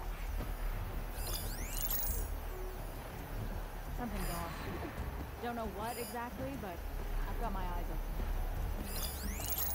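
Leaves rustle as someone creeps through dense plants.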